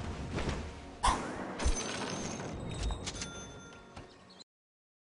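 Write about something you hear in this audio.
Game sound effects clash and chime.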